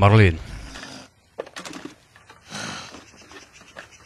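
An older man speaks in a low voice.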